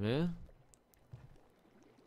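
A hook splashes into the water.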